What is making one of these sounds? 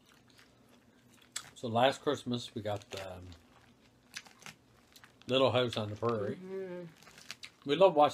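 Forks rustle and scrape through salad.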